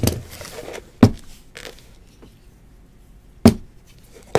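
Fingers knock and tap against a cardboard box.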